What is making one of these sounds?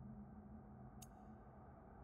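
A short soft click sounds as a menu selection changes.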